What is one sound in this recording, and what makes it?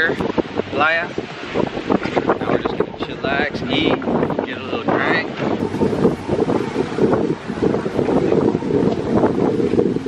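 Wind blows strongly past the microphone.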